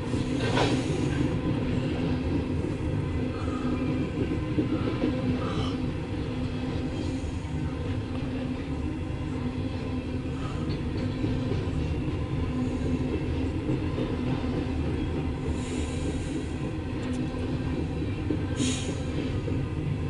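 Train wheels squeal and screech against the rails.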